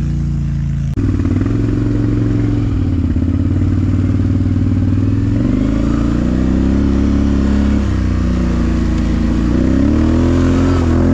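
A quad bike engine revs up and down as it drives.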